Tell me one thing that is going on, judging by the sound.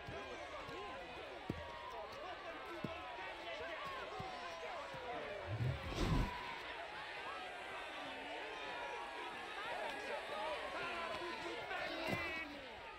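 A crowd of men and women cheer and shout excitedly outdoors.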